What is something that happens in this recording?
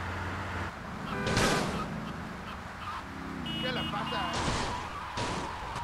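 Tyres screech on the road as a car turns.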